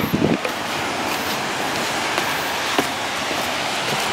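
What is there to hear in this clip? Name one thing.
Footsteps tap on wooden boards.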